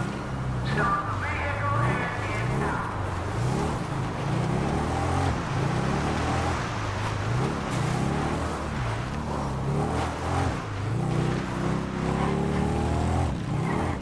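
A motorbike engine revs up and down repeatedly as the bike rides fast.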